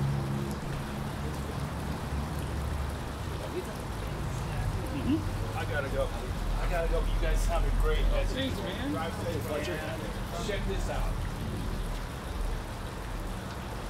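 Acoustic guitars strum a song outdoors.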